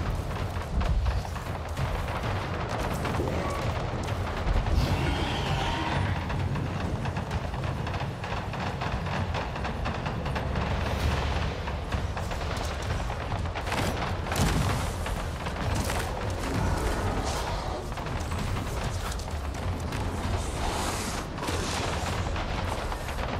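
Leaves and undergrowth rustle with footsteps.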